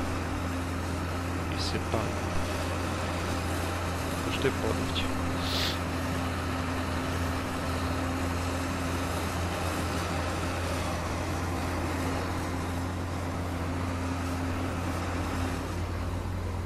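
A forage harvester engine drones steadily.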